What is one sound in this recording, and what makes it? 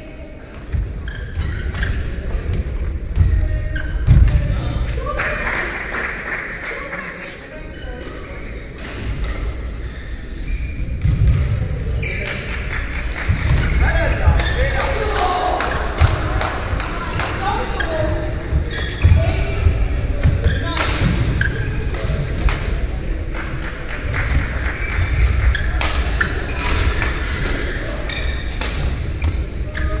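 Shoes squeak and thump on the court floor.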